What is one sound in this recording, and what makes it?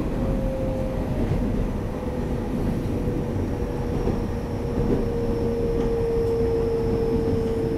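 An electric train's traction motors whine steadily.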